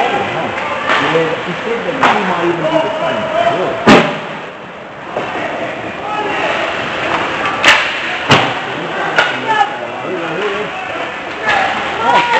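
Ice skates scrape and hiss across the ice in a large echoing arena.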